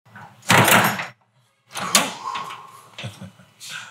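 A door handle rattles and clicks.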